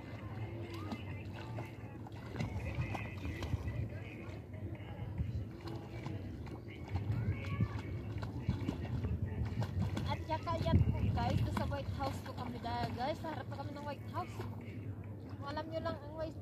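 A person swims, splashing softly in water.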